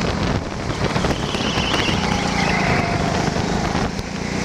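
Kart tyres squeal as they slide around corners.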